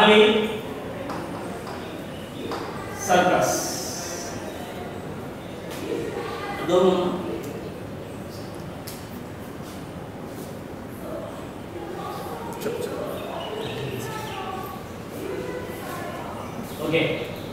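A young man speaks loudly and with animation in an echoing room.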